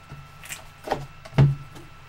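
A card slides out of a cardboard box.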